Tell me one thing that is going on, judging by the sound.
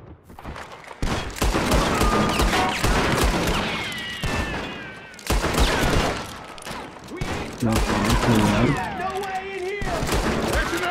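Gunshots crack in rapid bursts outdoors.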